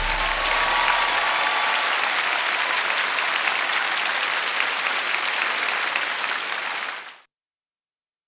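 A large audience applauds loudly in a big open space, then the applause fades out.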